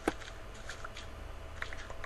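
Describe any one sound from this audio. Dirt is dug with quick scraping thuds.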